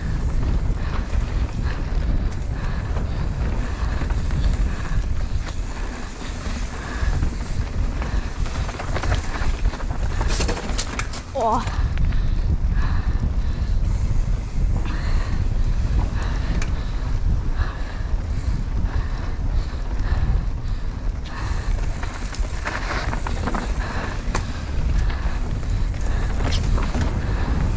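Bike tyres crunch and skid over a dirt trail.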